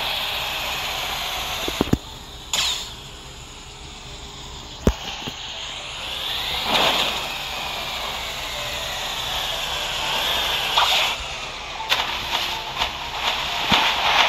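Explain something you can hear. A small boat splashes along through water.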